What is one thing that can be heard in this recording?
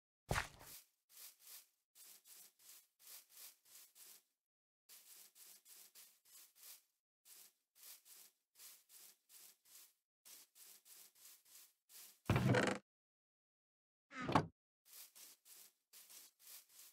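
Footsteps pad steadily on grass.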